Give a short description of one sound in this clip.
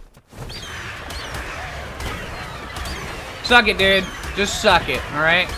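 Large wings flap with heavy, rhythmic whooshes.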